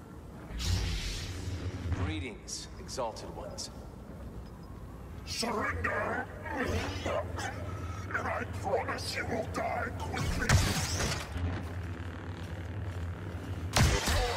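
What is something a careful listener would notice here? Lightsaber blades clash with sharp crackles.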